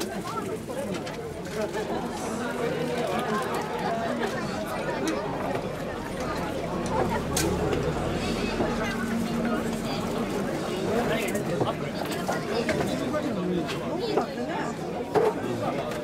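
Metal ornaments jingle and rattle on a swaying shrine.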